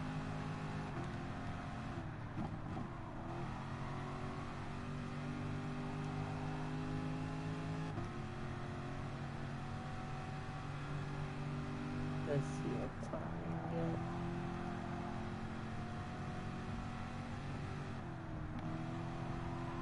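A race car engine drops in pitch and revs back up as gears shift.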